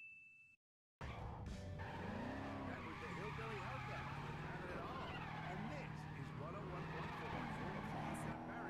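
Video game car tyres screech in a drift.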